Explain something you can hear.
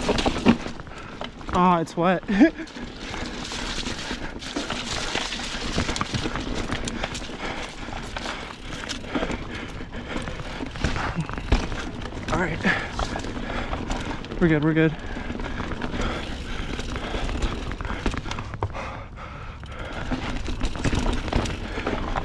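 Bicycle tyres crunch and roll over dirt, leaves and rocks.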